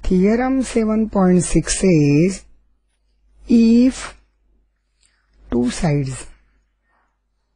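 An elderly woman speaks calmly and slowly into a close microphone.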